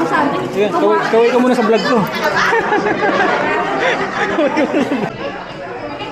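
A young woman talks loudly close by.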